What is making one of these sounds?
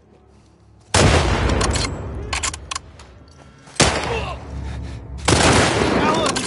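Gunshots ring out loudly in bursts.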